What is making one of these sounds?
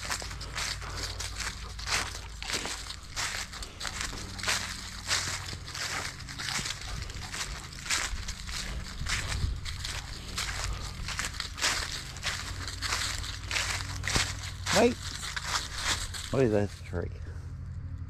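Footsteps crunch quickly through dry fallen leaves.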